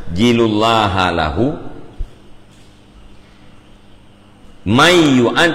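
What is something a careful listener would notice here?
A man reads aloud in a chanting voice close to a microphone.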